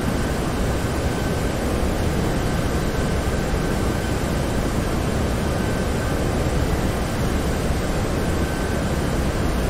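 Jet engines roar steadily with rushing air.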